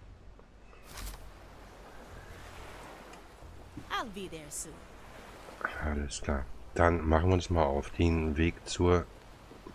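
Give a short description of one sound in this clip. Waves wash gently against wooden piers.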